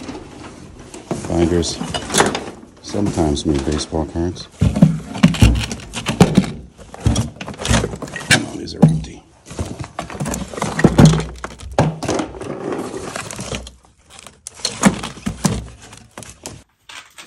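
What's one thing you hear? Cardboard boxes and papers rustle and thump as they are moved.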